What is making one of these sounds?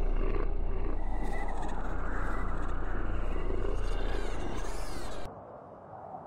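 Wind blows outdoors through trees.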